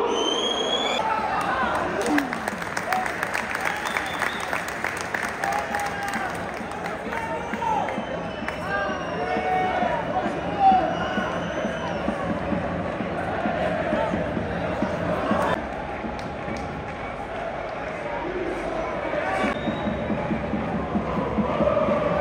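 A stadium crowd murmurs and shouts over a wide open space.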